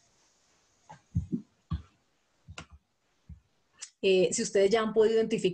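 A woman speaks through an online call, in short bursts and then steadily.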